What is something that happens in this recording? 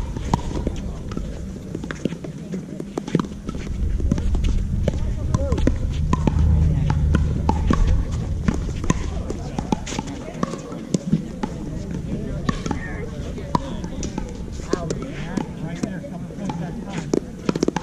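Paddles pop against a plastic ball in a quick rally.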